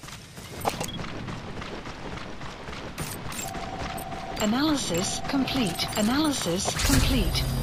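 Electronic beeps and chirps sound as binoculars zoom.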